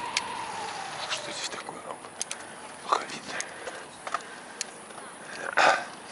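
A bicycle rattles and knocks over bumps.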